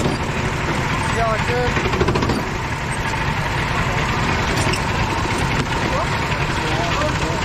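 A go-kart engine idles and revs up close by with a loud rattling drone.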